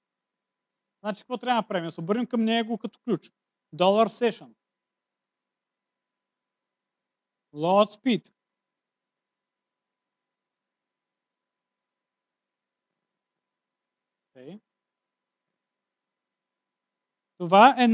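A man speaks calmly in short bursts with pauses.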